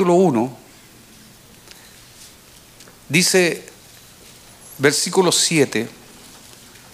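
A middle-aged man speaks slowly and solemnly into a microphone, with pauses.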